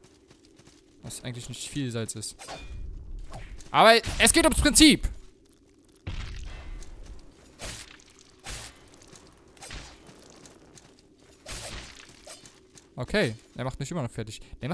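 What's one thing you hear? A sword swings and slashes with sharp whooshes.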